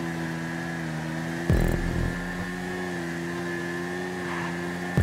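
A motorbike engine drones steadily at high speed.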